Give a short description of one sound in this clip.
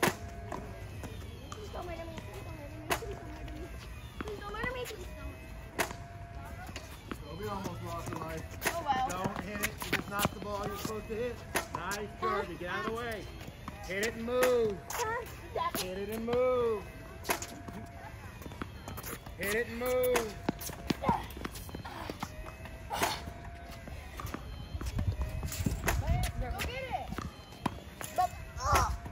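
Tennis balls bounce off rackets with sharp pops.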